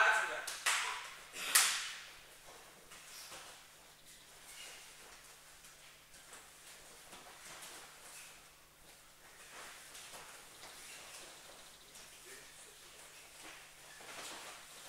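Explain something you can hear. Bare feet shuffle and thud on a soft mat.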